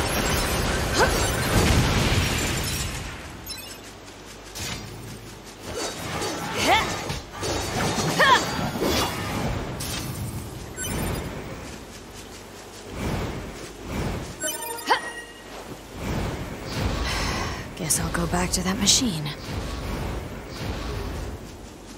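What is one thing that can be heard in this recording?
A blade swishes and clashes in quick strikes.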